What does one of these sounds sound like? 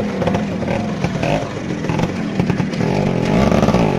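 More motorbike engines drone in the distance and grow closer.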